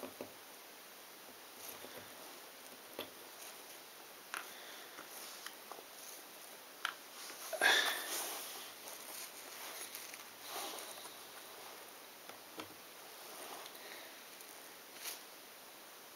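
Small jigsaw puzzle pieces click and tap softly against a table.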